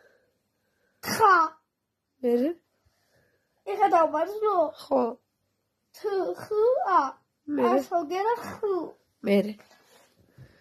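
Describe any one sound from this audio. A young boy talks tearfully in a wavering voice.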